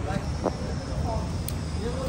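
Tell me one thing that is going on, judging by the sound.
Pliers click against a chain link.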